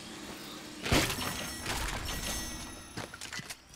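A magical chest bursts open with a loud shimmering whoosh.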